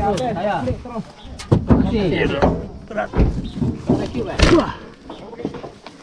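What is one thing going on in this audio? A man talks close by with animation.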